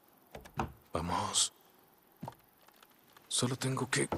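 A wooden ladder knocks and clatters as it is picked up.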